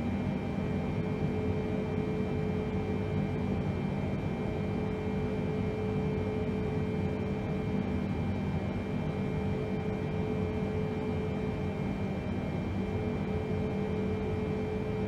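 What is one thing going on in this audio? Jet engines hum in a low, steady drone from inside an aircraft.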